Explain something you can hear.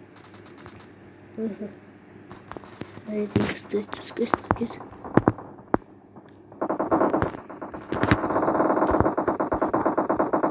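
Footsteps thud across a hollow metal roof.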